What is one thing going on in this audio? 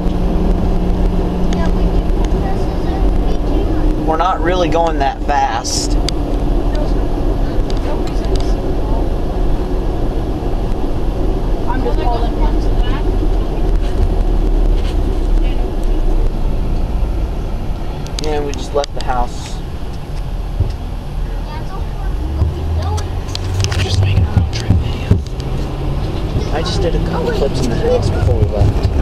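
A vehicle's engine hums steadily from inside the cabin.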